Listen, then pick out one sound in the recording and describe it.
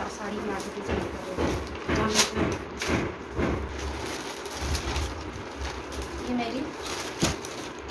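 Plastic wrappers crinkle and rustle as they are handled.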